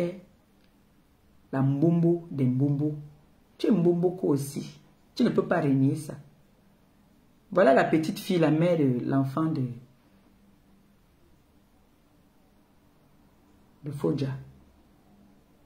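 A woman speaks calmly and closely, with pauses.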